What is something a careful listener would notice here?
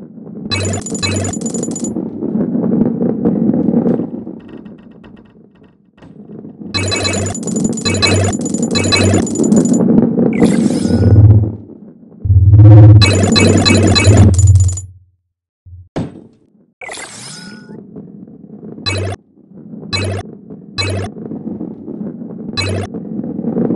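Bright chimes ring out in quick bursts as coins are collected.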